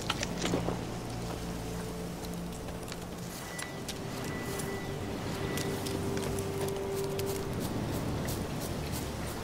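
Footsteps crunch along a dirt path.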